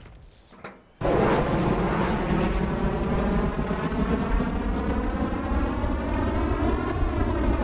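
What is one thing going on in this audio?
A jet engine roars loudly and steadily, rising slightly in pitch.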